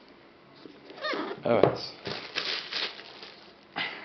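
A plastic wrapper crinkles.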